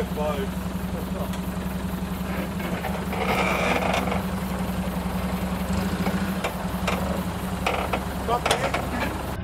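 An off-road vehicle's engine idles and rumbles at low revs.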